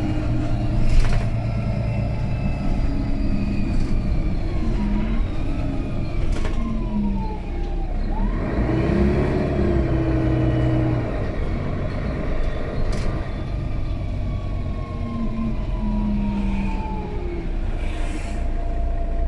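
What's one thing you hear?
A bus body rattles and clunks over bumps.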